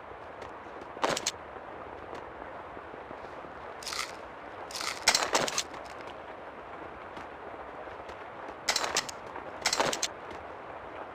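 Small items clink as they are picked up.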